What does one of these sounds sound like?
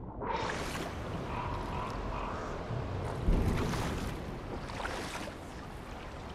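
Water splashes and laps around a swimmer.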